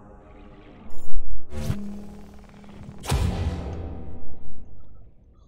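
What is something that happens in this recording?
An electric beam crackles and zaps loudly.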